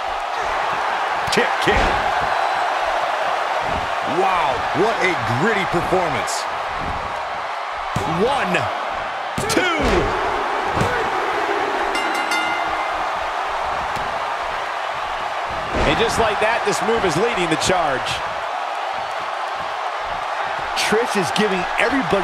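Bodies slam heavily onto a wrestling mat with loud thuds.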